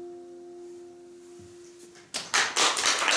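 A strummed acoustic guitar chord rings out and slowly fades.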